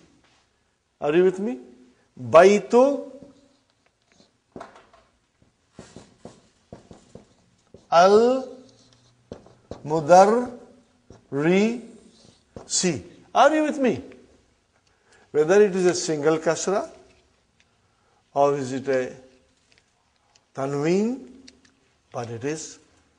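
An elderly man speaks slowly and deliberately into a close microphone, in short phrases with pauses.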